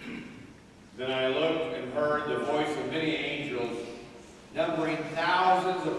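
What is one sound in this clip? A man sings in a clear voice in an echoing hall.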